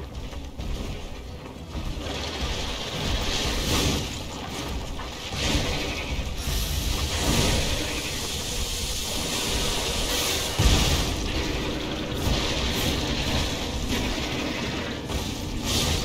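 A large monster roars and stomps.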